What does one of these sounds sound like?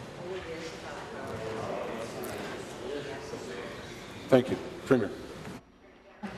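A man reads out loudly in a large echoing hall.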